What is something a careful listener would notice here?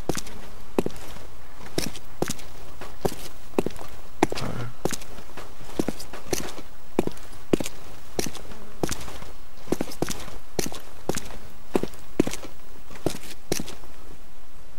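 Footsteps thud steadily on grass and dirt at a quick walking pace.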